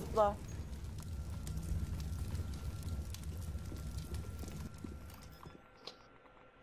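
Flames roar and crackle close by.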